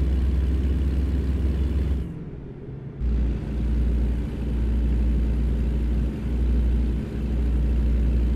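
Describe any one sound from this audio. A truck engine drones with a deep, steady rumble.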